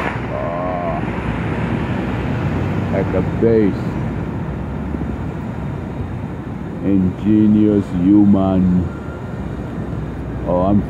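Construction machinery rumbles steadily in the distance.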